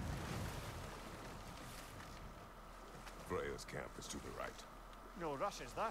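Oars splash gently in water.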